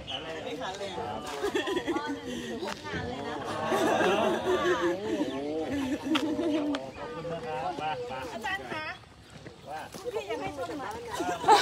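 A young man talks with animation outdoors.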